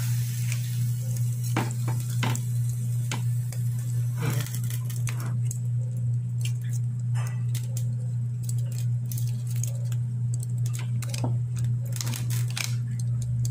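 A pot crackles and pops softly on a stove.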